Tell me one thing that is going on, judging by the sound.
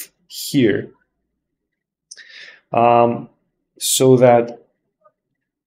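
A young man speaks calmly into a close microphone, in short phrases.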